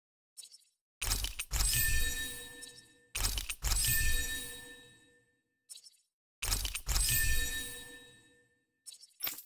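Bright sparkling chimes ring out and fade, several times.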